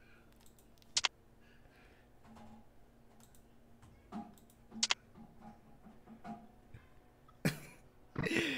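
Short electronic menu clicks sound now and then.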